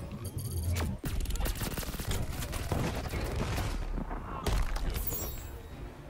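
Blasts and impacts crack and boom in quick succession.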